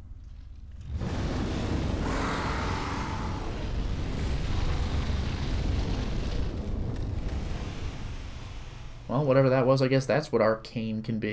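Flames roar in a steady rush.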